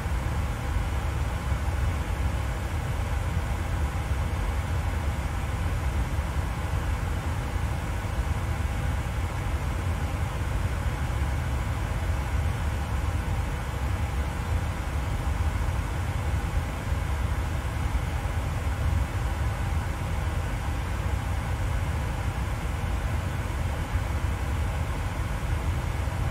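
Jet engines drone steadily.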